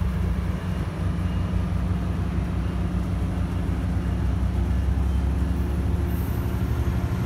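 A diesel locomotive engine rumbles and drones steadily close by.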